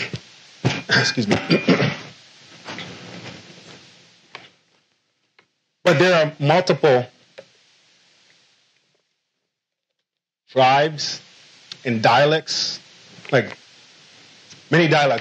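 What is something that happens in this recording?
A man speaks with animation through a microphone in a room with a slight echo.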